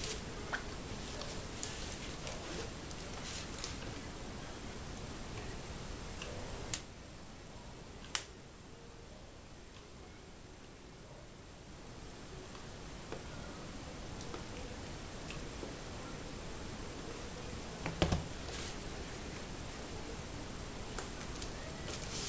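Paper rustles and crinkles as hands handle a paper bag.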